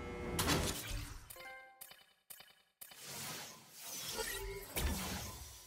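Short electronic menu blips sound as a selection moves from item to item.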